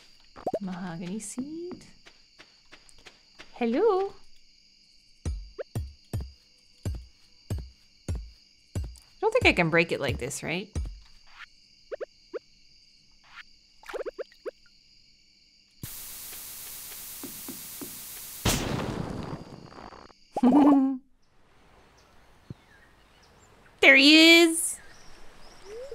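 A young woman talks casually into a microphone.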